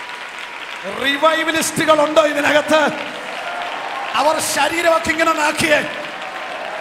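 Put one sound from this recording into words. A man shouts loudly through a microphone over loudspeakers in an echoing hall.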